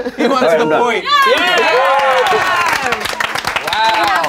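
A group of people cheer and clap.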